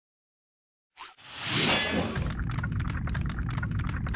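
A dragon statue bursts with a crackling, magical whoosh.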